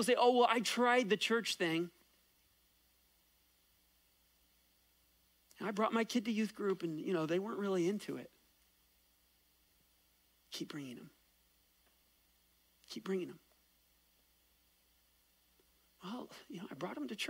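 A man speaks with animation through a microphone, pausing often.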